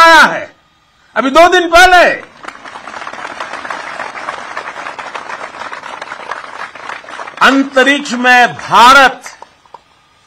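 An elderly man speaks forcefully into a microphone, his voice carried over loudspeakers.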